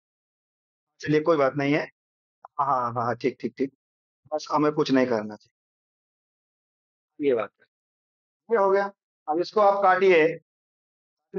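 A man speaks with animation into a close headset microphone, in short bursts.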